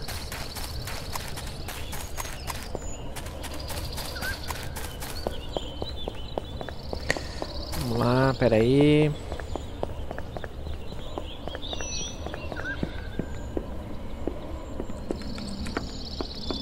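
Footsteps crunch steadily over grass and gravel.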